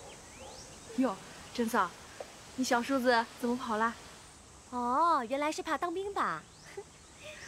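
A young woman speaks teasingly.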